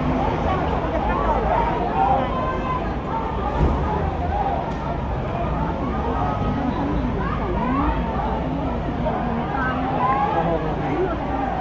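A crowd of men and women talk and shout over one another close by, outdoors.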